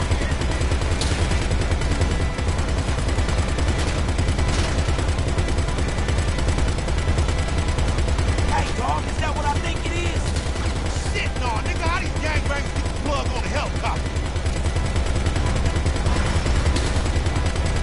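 A gun fires single shots now and then.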